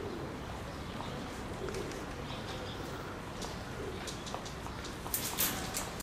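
Parrot claws and beaks click and scrape on a wire cage.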